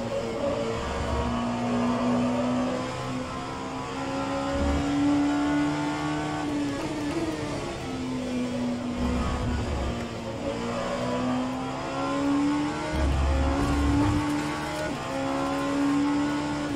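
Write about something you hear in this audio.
A racing car engine roars, rising in pitch and dropping sharply with each gear change.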